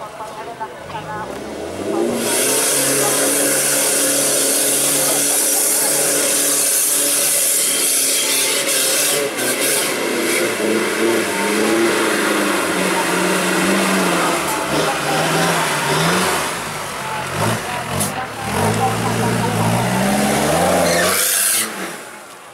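A diesel off-road four-wheel drive revs hard under load.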